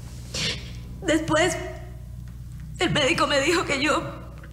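A young woman sobs and speaks tearfully, close by.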